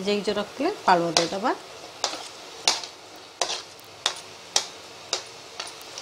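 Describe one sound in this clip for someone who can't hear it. Chopped food slides off a plate into a pan.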